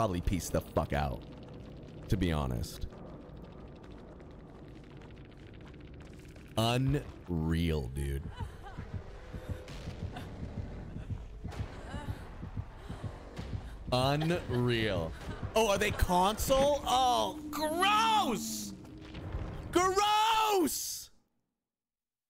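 A young man talks and shouts with animation into a close microphone.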